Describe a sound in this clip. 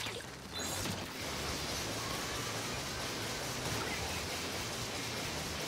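A giant hammer slams down with heavy thuds.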